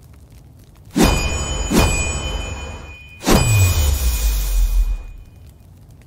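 A forge fire roars up in a loud burst.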